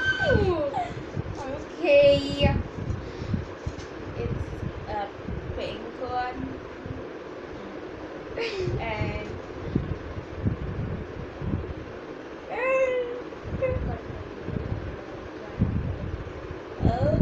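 Two young girls talk playfully close by.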